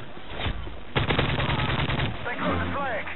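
A gun fires a rapid automatic burst.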